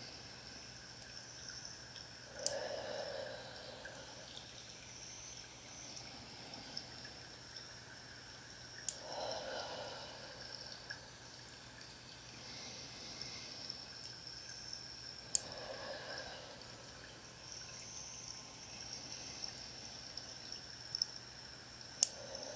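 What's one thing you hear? Scissors snip sharply close by, a few times.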